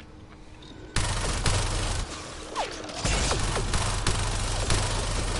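A laser gun fires in rapid bursts.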